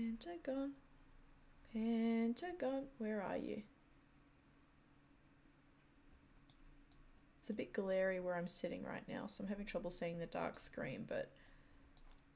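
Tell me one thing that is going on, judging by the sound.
A woman talks calmly and close to a microphone, in bursts with pauses.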